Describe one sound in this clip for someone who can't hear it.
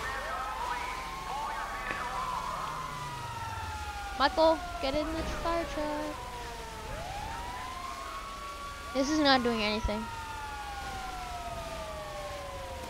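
Sirens wail and rise and fall throughout.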